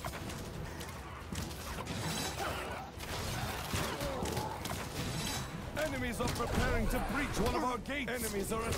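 Blades swing and clash in quick, sharp strikes.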